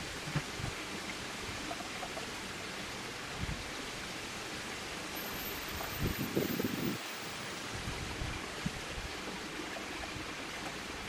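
A cat laps water with soft wet licks.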